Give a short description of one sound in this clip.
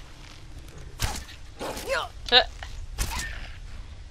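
A bow string twangs as an arrow is loosed.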